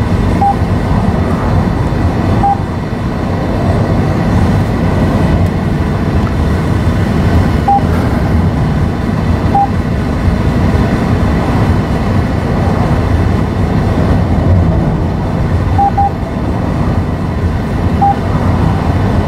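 A car engine and tyres rumble steadily while driving.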